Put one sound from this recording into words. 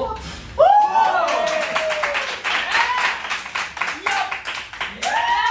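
Several people clap their hands rapidly.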